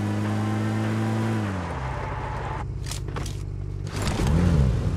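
A vehicle engine hums steadily and then drops in pitch.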